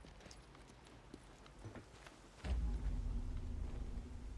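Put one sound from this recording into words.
Footsteps shuffle softly over gritty ground.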